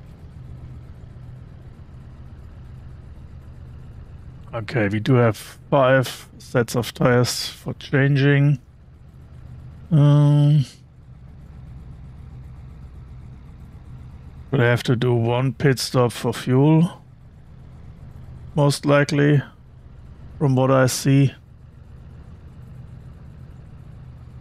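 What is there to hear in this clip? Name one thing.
A race car engine idles with a low steady rumble.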